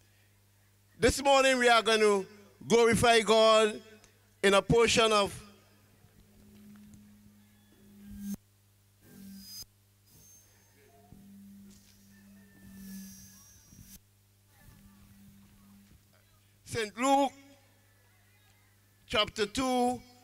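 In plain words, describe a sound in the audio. A middle-aged man reads out through a microphone and loudspeakers, in short bursts.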